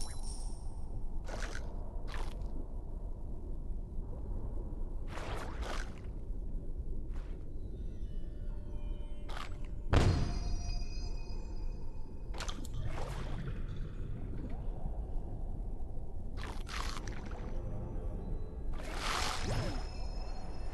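A low underwater rumble drones steadily.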